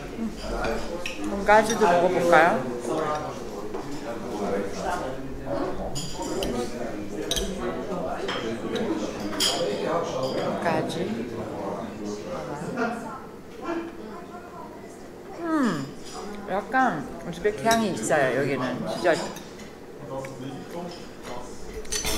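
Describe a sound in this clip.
A knife and fork scrape and clink on a plate.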